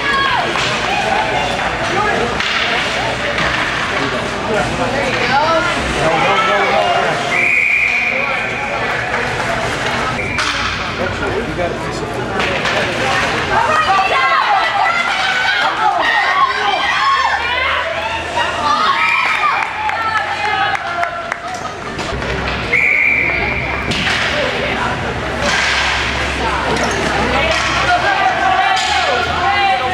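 Spectators chatter nearby in a large echoing rink.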